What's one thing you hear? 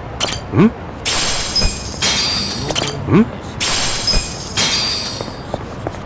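A vending machine clunks as a can drops out.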